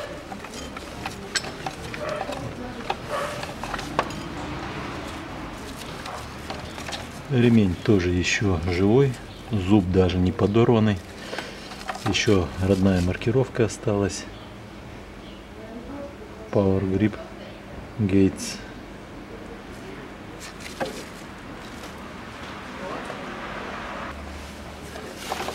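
Hard parts click and knock as hands work on them.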